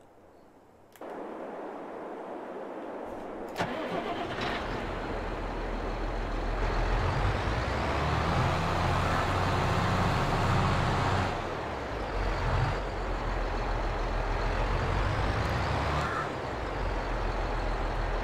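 A tractor engine rumbles steadily and revs up and down.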